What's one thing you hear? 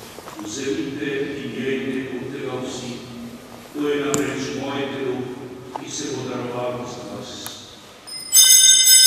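An elderly man prays aloud in a steady, chanting voice through a microphone.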